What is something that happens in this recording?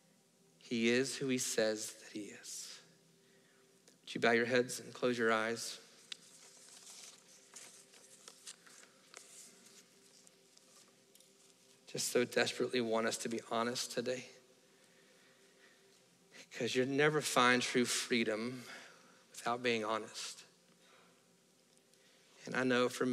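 A man speaks with animation through a microphone in a large room, pausing now and then.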